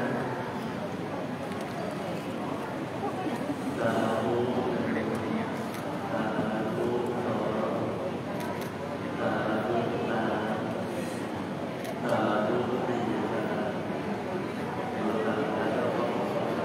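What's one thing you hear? A man chants steadily into a microphone, heard through a loudspeaker.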